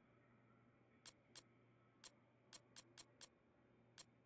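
Short game menu clicks sound as options are selected.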